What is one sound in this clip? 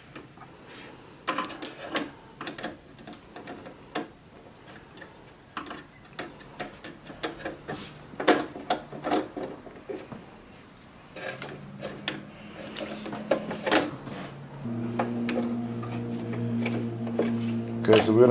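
A screwdriver clicks and scrapes against plastic parts.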